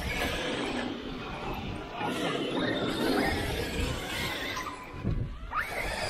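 A small electric model car whines as it races over dirt.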